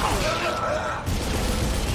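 An energy weapon fires with a sharp zap.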